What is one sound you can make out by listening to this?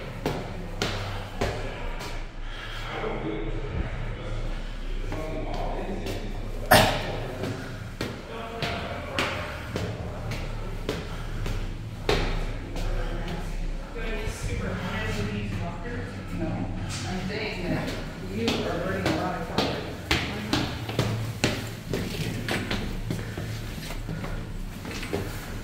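Footsteps climb hard stairs, echoing in a stairwell.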